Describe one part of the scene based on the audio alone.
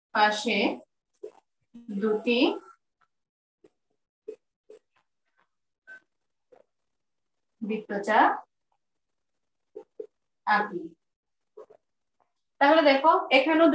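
A woman speaks calmly in short phrases, close by.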